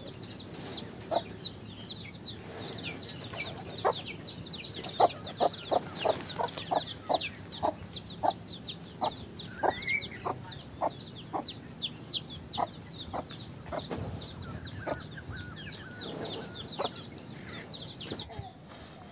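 A chick cheeps rapidly and repeatedly.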